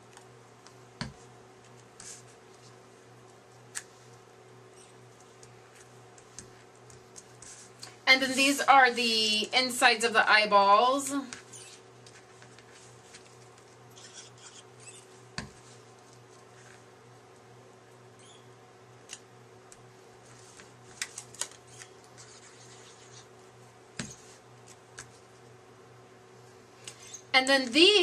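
Paper shapes tap and slide softly on a cutting mat.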